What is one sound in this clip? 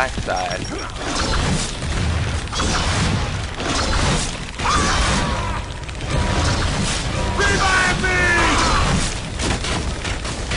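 Gunfire rattles in rapid bursts.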